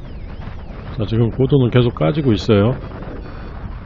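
A man speaks briefly and calmly close to the microphone.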